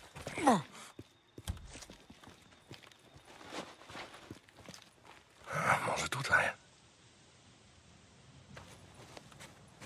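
Footsteps crunch on snow and rock.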